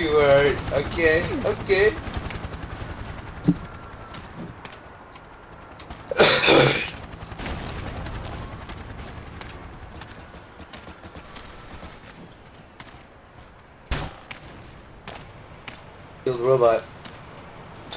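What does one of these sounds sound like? A teenage boy talks with animation into a headset microphone.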